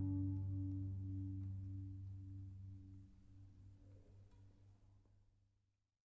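An orchestra holds a final chord that slowly fades away.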